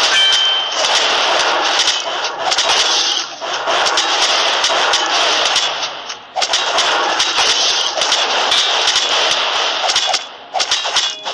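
Swords and weapons clash in a crowded video game battle.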